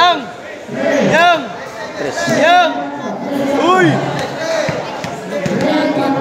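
A large crowd chatters and murmurs in an echoing hall.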